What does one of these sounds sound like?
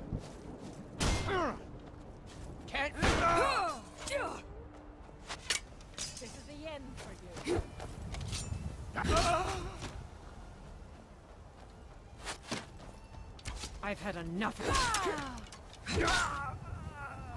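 Steel blades clash and ring in a fight.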